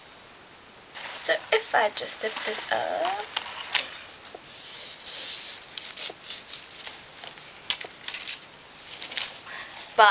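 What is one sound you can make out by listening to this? Fabric rustles and swishes as it is handled.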